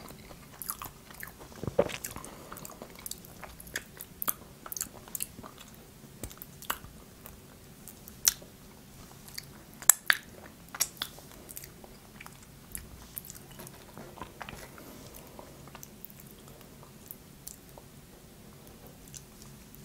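Crispy fried food crackles as fingers break it.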